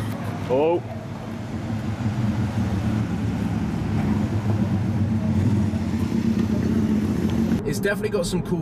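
A sports car engine idles with a deep, steady rumble.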